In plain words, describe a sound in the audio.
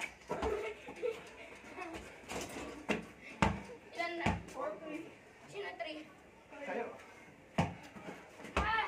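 A basketball bounces hard on concrete.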